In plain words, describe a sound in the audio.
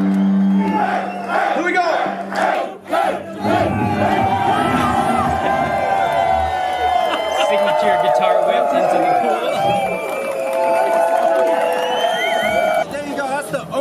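A large crowd sings and shouts loudly.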